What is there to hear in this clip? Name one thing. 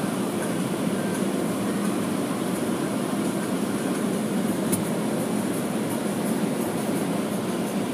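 Water sprays and drums steadily against a car's windows, heard from inside.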